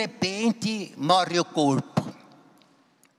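An elderly man speaks with animation through a microphone in a reverberant hall.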